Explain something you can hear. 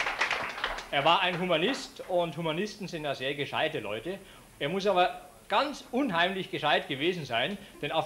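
An older man speaks cheerfully into a microphone.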